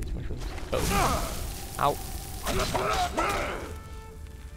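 A creature shrieks and grunts in a fight.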